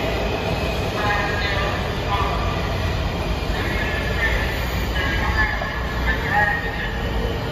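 Train brakes squeal with high whines.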